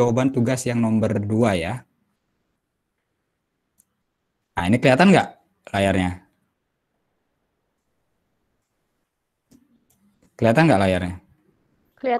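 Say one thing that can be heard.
A man speaks calmly in bursts through an online call.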